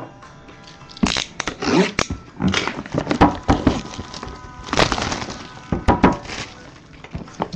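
Plastic wrap crinkles and tears as hands pull it off a box.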